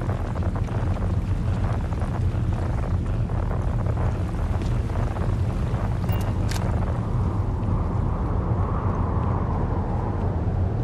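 Footsteps crunch on hard ground.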